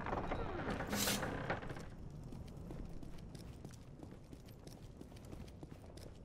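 Footsteps tap on a stone floor at a steady pace.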